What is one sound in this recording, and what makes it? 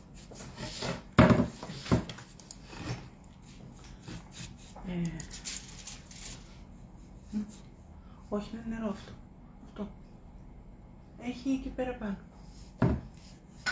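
A metal tool scrapes and taps on a board.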